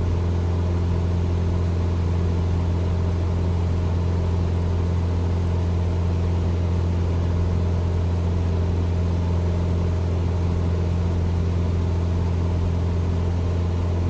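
A small propeller plane's engine drones steadily.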